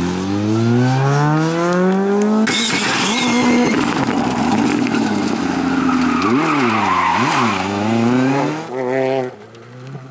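A rally car engine roars and revs hard, rising and falling in pitch as it shifts gears.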